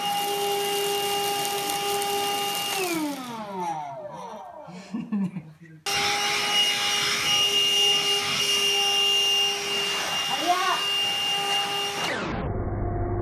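A handheld vacuum cleaner whines steadily.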